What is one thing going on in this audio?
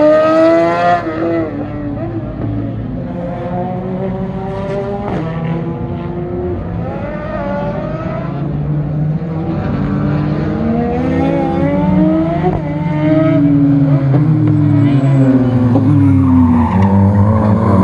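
Racing car engines roar and rev up and down.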